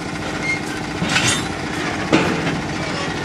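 Metal clanks as a worker climbs onto a railcar step.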